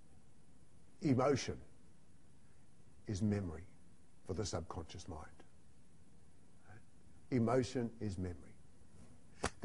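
An elderly man speaks with animation into a microphone, pausing between short phrases.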